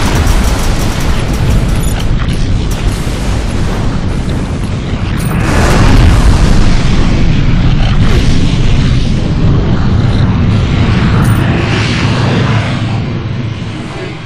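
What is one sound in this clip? Energy beams crackle and hum.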